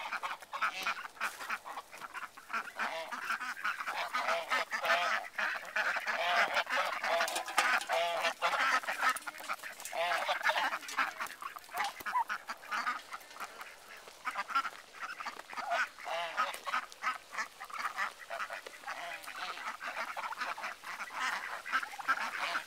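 Geese honk.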